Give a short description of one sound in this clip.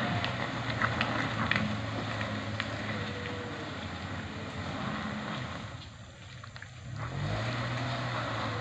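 A car engine hums as the car drives slowly along a muddy road.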